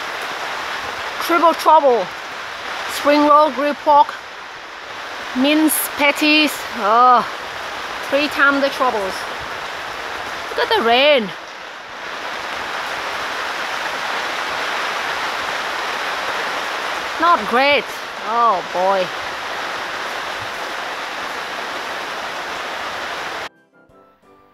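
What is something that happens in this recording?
Steady rain pours down outdoors, splashing on wet paving.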